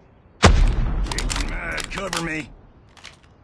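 A rifle bolt clicks and clacks during a reload.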